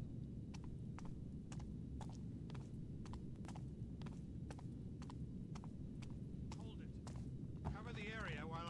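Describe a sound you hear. Footsteps tap steadily on a hard floor.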